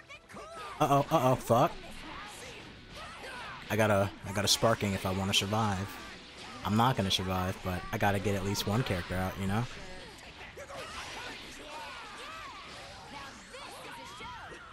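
Punches and energy blasts crash and whoosh in a fighting game.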